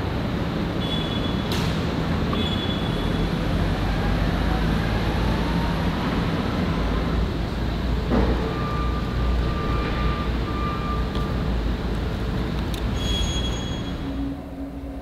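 Plastic rustles as a bag is handled.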